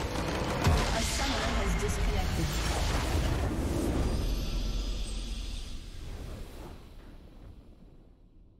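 A large crystal structure shatters in a loud, rumbling explosion.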